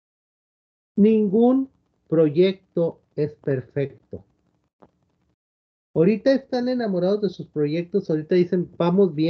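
A man speaks calmly over an online call, pausing now and then.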